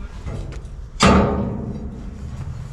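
A metal ladder unfolds with a loud clank.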